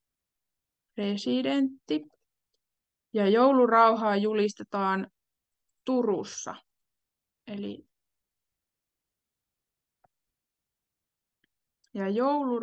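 A young woman speaks calmly in bursts through an online call microphone.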